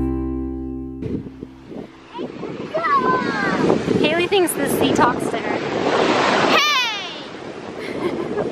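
Waves wash up onto a sandy shore.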